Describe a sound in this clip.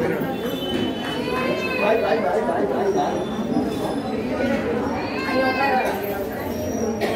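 A woman speaks in a high, lively voice.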